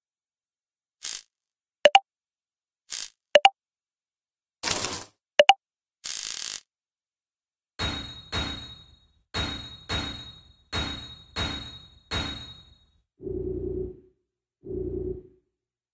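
Video game menu sounds click and whoosh as choices are made.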